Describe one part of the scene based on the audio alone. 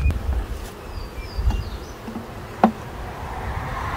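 A wooden hive frame knocks against the box.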